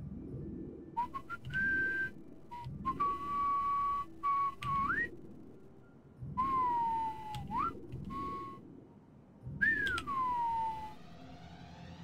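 Electronic tones beep and glide up and down.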